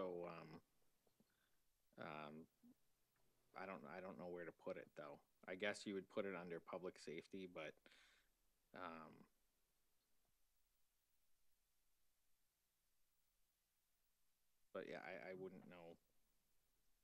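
A young man speaks calmly into a microphone, in pauses.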